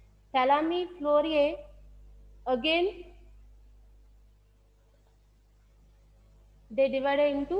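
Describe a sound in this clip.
A man speaks in a lively, lecturing voice over an online call.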